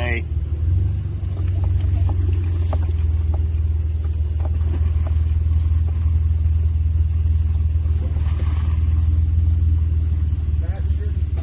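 A vehicle's body creaks and rattles over a rough dirt track.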